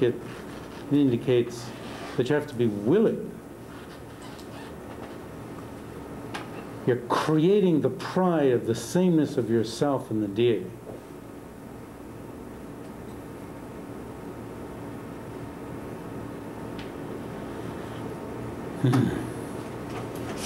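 An elderly man speaks calmly and slowly nearby, with pauses.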